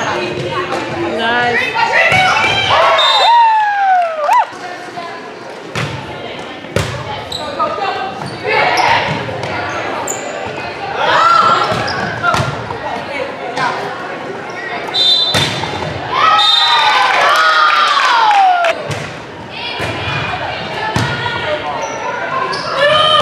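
Young women shout and cheer loudly in a large echoing gym.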